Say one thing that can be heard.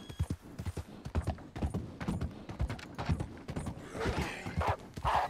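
Horse hooves thud on wooden planks.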